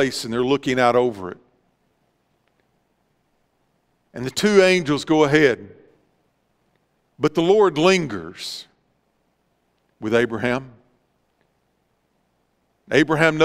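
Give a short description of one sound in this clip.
A middle-aged man speaks calmly through a microphone, pausing between phrases.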